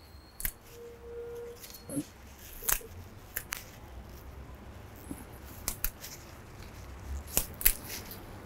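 Leaves rustle and stems snap as a man strips a plant.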